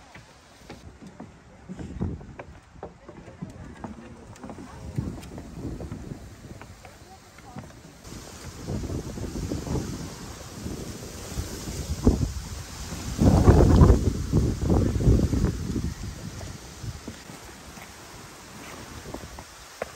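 Footsteps thud on wooden steps.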